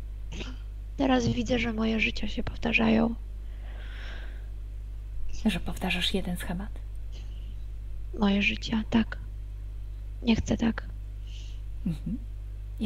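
A young woman speaks with animation through an online call.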